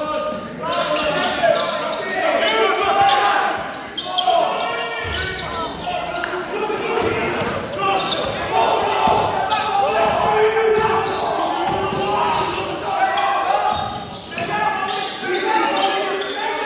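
Men shout and call out across the hall.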